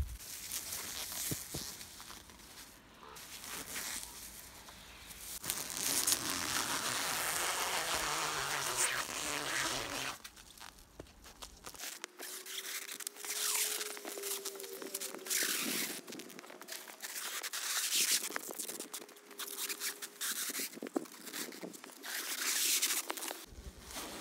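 Plastic sheeting crinkles and rustles as it is unrolled and stretched.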